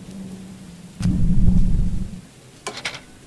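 A heavy machine's engine rumbles loudly.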